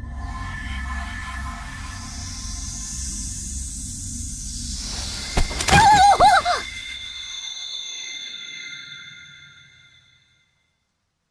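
A magical shimmering hum swells, flares brightly and then slowly fades away.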